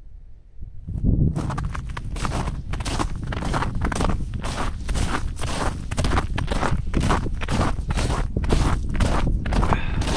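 Footsteps crunch on ice and frozen snow.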